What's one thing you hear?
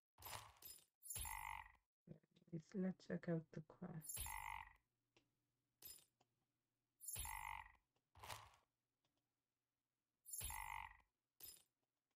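Video game attack sound effects ring out repeatedly.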